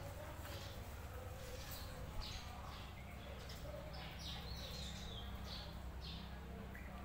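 A puppy whines with short, high squeaks.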